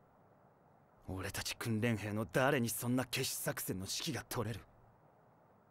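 A young man asks a question sharply and scornfully.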